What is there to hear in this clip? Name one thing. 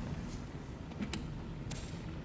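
A storage container lid clicks open.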